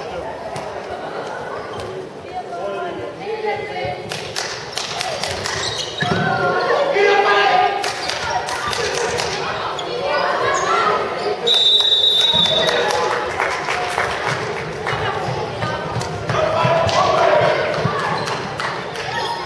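Young women players shout and call out to each other.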